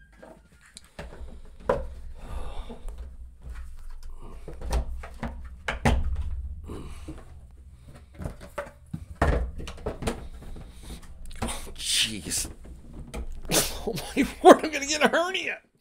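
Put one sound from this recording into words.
Plastic trays knock and clatter as hands lift and shift them.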